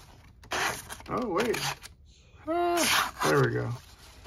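A sharp knife slices through paper.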